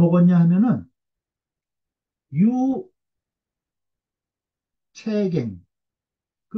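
A middle-aged man speaks slowly in short phrases over an online call, with pauses between them.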